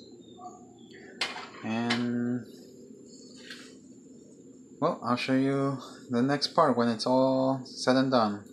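Batter sizzles softly in a hot frying pan.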